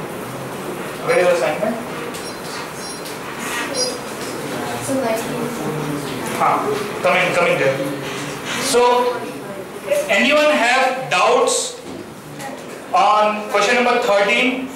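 A man speaks calmly into a headset microphone, explaining and reading out.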